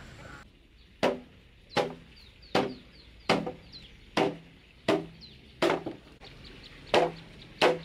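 A mallet strikes a metal rod with sharp, steady knocks.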